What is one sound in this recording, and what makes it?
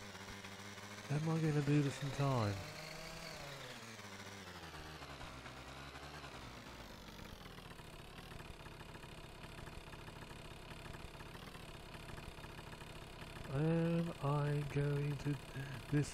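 A scooter engine hums steadily, its pitch rising and falling as it speeds up and slows down.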